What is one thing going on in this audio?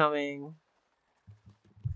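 A pencil scratches on paper.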